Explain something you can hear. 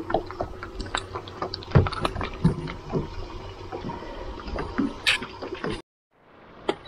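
A hooked fish flaps and thrashes on a line.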